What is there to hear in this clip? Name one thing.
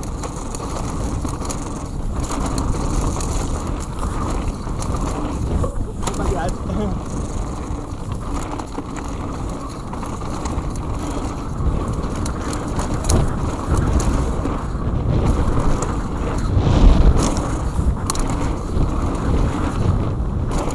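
Wind rushes past a fast-moving rider.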